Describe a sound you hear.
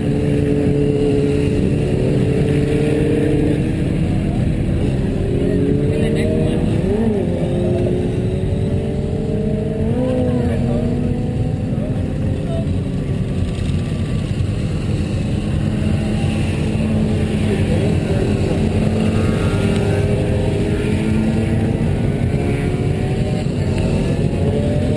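Motorcycle engines idle and rev up and down nearby.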